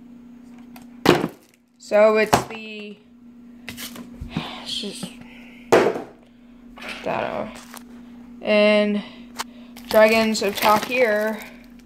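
Cardboard packaging rustles and taps as it is handled.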